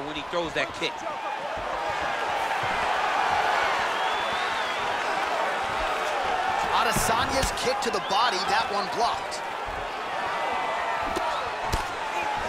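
A crowd cheers and roars in a large arena.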